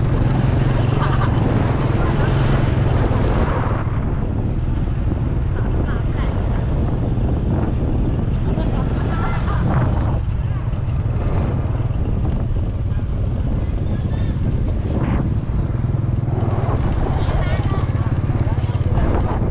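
Motorbikes pass by on the street.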